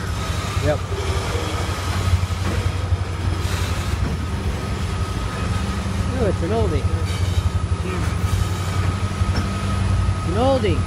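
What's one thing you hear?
A freight train rumbles and clatters steadily past on the tracks.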